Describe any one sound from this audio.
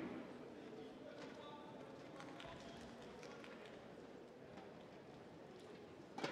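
A small crowd murmurs softly in a large echoing hall.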